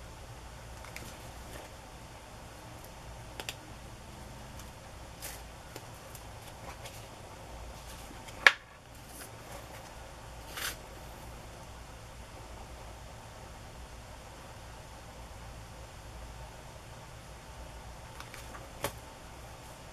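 Small objects tap and click on a table.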